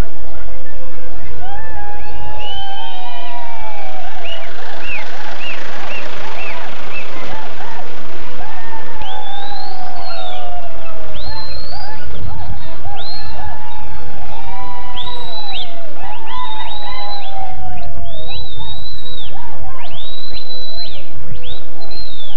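A crowd of men and women chatter and call out outdoors.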